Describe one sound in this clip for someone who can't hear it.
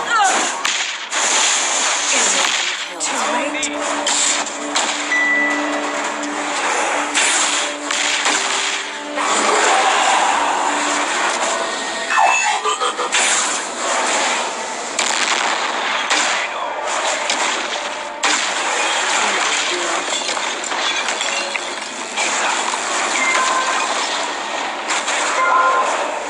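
Game sound effects of battle blasts and magic crackle throughout.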